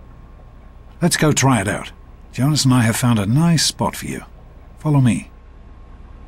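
A man speaks calmly through a game's sound.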